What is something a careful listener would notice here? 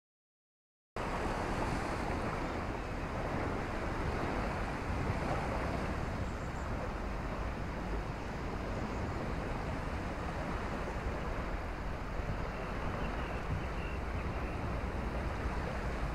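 Gentle water laps and trickles nearby.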